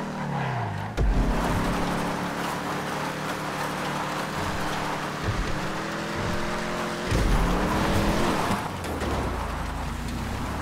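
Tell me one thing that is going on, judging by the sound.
Car tyres skid and hiss on gravel.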